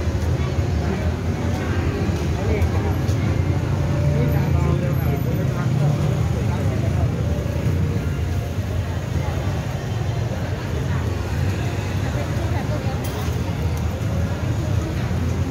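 Footsteps shuffle on concrete close by.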